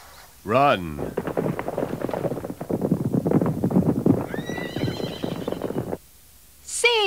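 Hooves thunder across the ground as a herd gallops.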